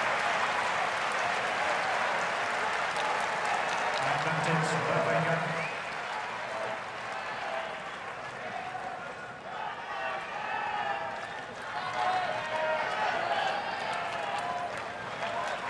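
A large crowd of spectators murmurs and chatters in an open arena.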